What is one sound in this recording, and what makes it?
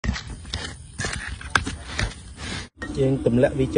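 A spoon scrapes and clinks against a plastic bowl while mixing.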